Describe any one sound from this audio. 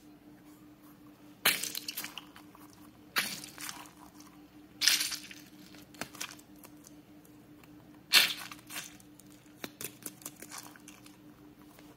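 A squishy mesh ball squelches softly as hands squeeze it.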